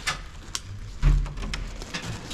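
A door latch clicks.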